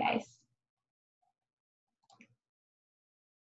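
A young woman speaks softly over an online call.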